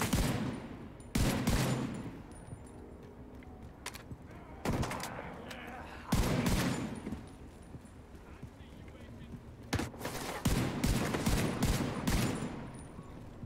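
Gunshots crack in loud bursts, echoing afterwards.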